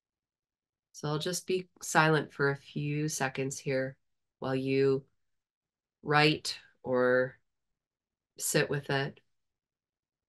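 A middle-aged woman speaks calmly and slowly over an online call, with long pauses.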